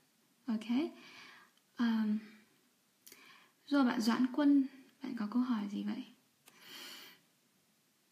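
A young woman speaks calmly and close to a microphone, in short phrases.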